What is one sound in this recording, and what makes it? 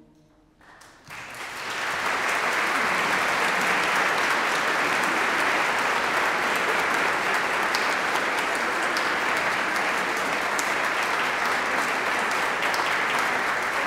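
An audience claps loudly in applause.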